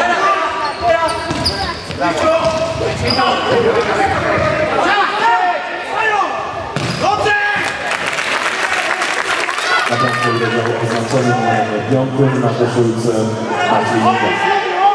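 Young men shout to each other across an echoing hall.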